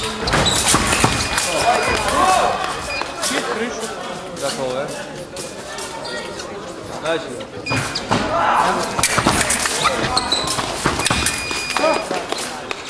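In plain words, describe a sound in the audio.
An electronic scoring beep sounds.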